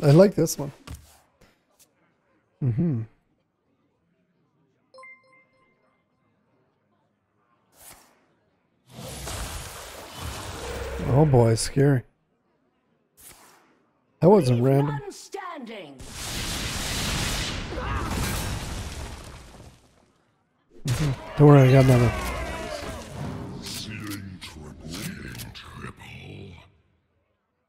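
A man talks animatedly, close to a microphone.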